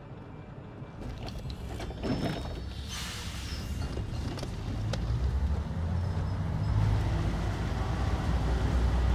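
A vehicle engine rumbles low and steadily, growing louder.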